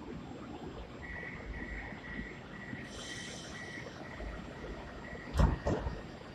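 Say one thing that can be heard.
A door warning chime beeps repeatedly.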